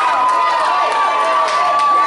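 An audience cheers and shouts.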